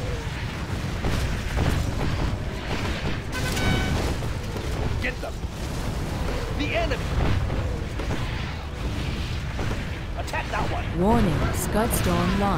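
Explosions boom loudly and rumble.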